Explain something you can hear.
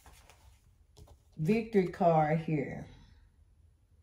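A card is picked up from a cloth-covered table with a soft rustle.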